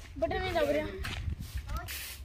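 A young boy speaks close by.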